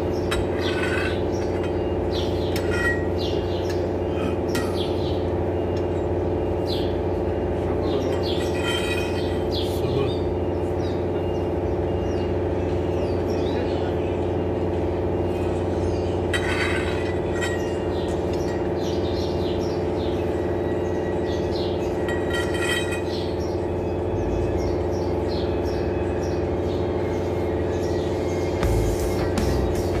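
A ratchet wrench clicks as bolts are turned.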